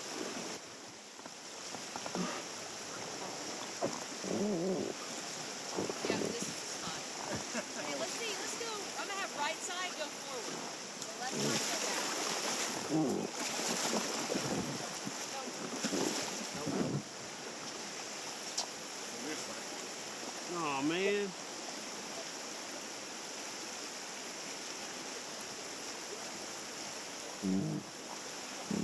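River water rushes over rocks nearby.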